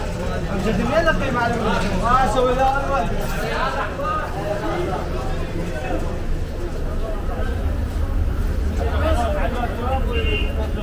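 Several men talk nearby with animation.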